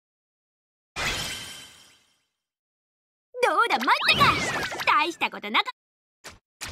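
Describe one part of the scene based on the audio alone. A video game plays a short victory chime.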